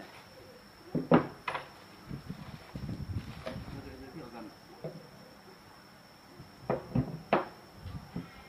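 A heavy metal object knocks on a wooden table.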